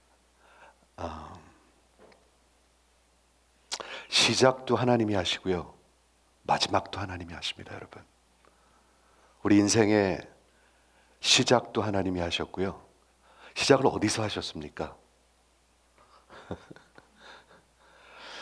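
A middle-aged man speaks with animation into a headset microphone, pausing between phrases.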